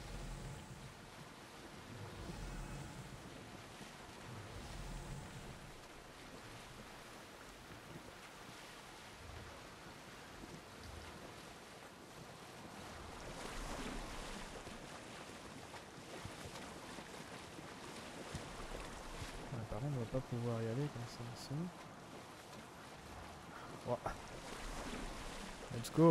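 A wooden pole swishes through water as a boat is pushed along.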